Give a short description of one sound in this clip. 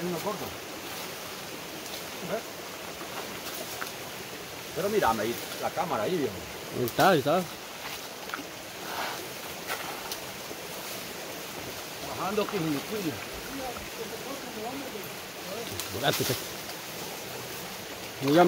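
Leaves rustle as branches are pushed aside.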